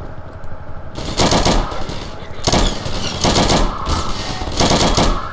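A machine gun fires loud rapid bursts.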